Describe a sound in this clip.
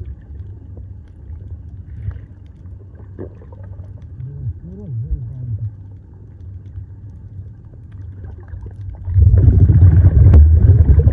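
Water rumbles and gurgles, heard muffled underwater.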